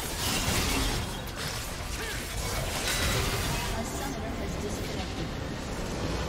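Magic blasts and weapon strikes crackle and clash in a busy battle.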